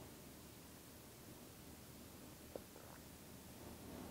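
A glass is set down on a table with a light knock.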